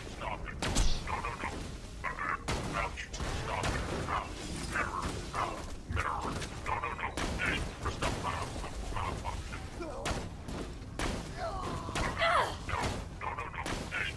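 Guns fire in rapid bursts of sharp shots.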